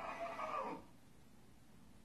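A man speaks in a low, deep voice through a television loudspeaker.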